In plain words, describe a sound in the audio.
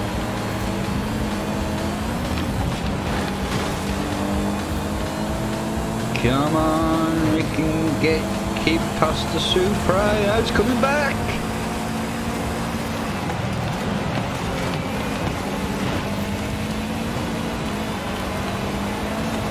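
A car engine roars steadily as a racing car speeds along.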